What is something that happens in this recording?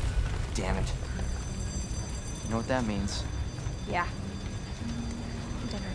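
A man speaks in a low, tense voice.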